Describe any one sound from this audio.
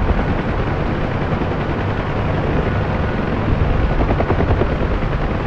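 Rain patters steadily on a helicopter's windscreen.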